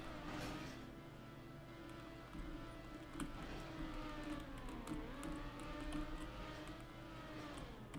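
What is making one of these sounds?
A racing car engine hums and revs, rising and falling in pitch.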